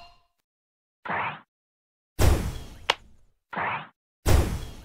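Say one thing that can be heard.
Game bubbles whoosh as they are shot.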